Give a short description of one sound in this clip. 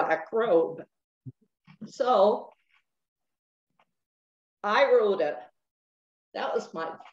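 An elderly woman speaks calmly in bursts through an online call, with pauses between phrases.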